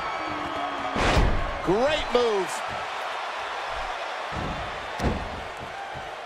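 Bodies slam down hard onto a wrestling mat with a loud thud.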